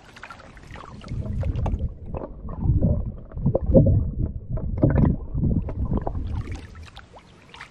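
Water gurgles and sloshes close by, heard muffled from under the surface.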